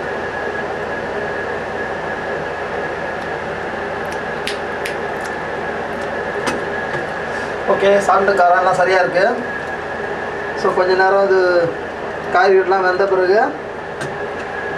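A utensil clinks and scrapes against a metal pan.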